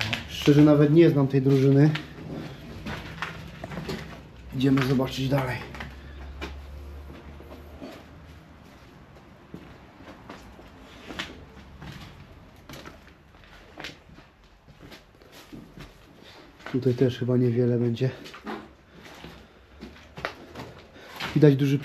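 Footsteps crunch on debris close by.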